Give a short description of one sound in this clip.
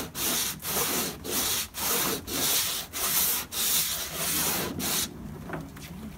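A sanding block rasps back and forth over a board in quick, steady strokes.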